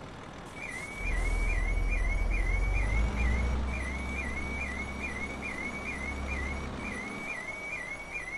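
A truck engine rumbles low and idles.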